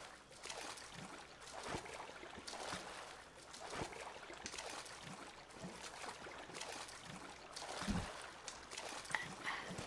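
Water splashes and sloshes with steady swimming strokes.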